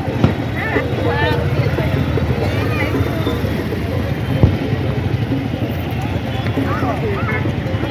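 Motorbikes rumble past nearby.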